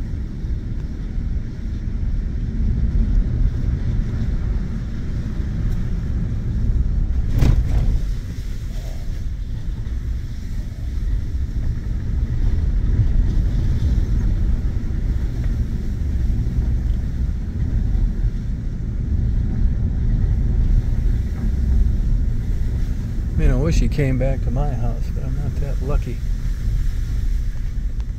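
A truck engine rumbles low and steady as it drives along.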